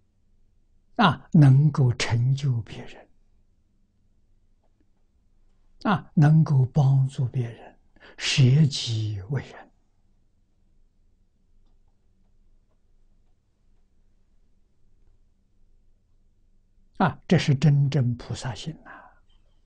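An elderly man speaks calmly into a close microphone, pausing between phrases.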